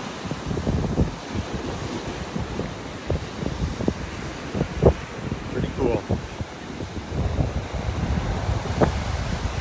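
Small waves wash onto the shore.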